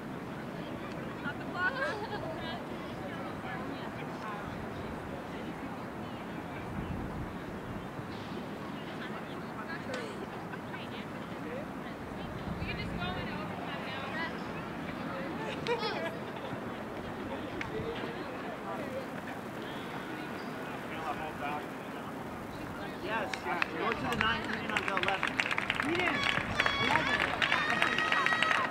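A mixed crowd of spectators murmurs and calls out in the distance outdoors.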